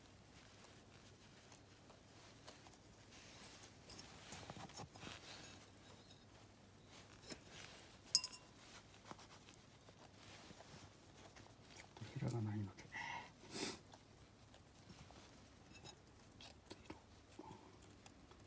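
A wooden skewer scrapes and taps on a ceramic plate.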